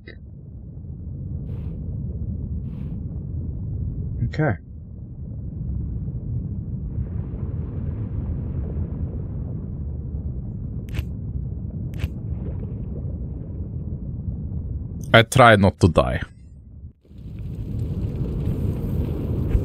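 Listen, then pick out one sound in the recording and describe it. A low, rumbling game soundtrack drones steadily.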